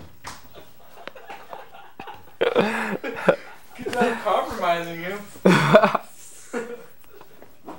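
Two young men laugh loudly.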